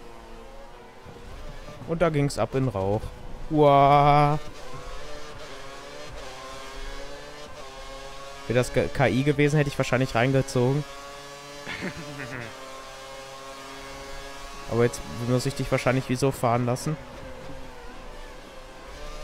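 A racing car engine screams at high revs, rising in pitch as it speeds up through the gears.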